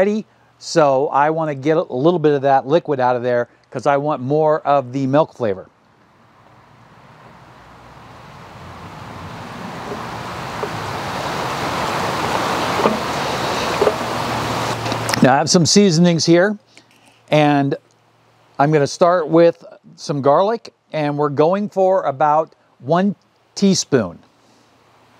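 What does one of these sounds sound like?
A man talks calmly and clearly nearby.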